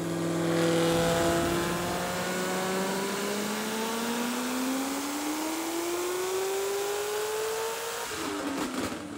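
A car engine roars loudly, revving steadily higher.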